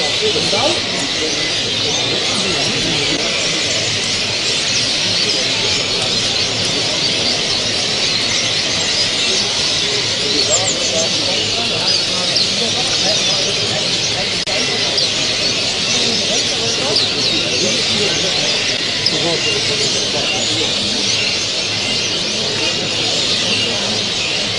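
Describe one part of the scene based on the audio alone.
A songbird sings close by.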